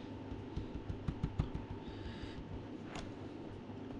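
A finger taps lightly on a device's buttons.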